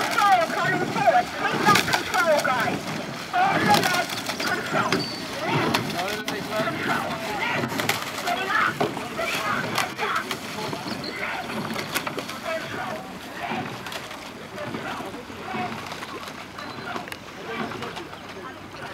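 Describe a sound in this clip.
A man shouts calls to a rowing crew from across the water, growing fainter.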